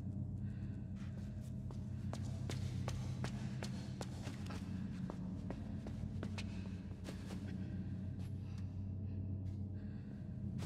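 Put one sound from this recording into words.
Small footsteps patter quickly across a hard floor.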